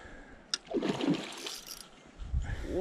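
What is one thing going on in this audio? Water splashes as a fish strikes at a lure.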